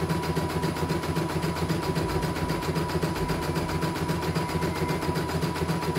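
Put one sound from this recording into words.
An embroidery machine stitches with a fast, steady rhythmic whir and clatter.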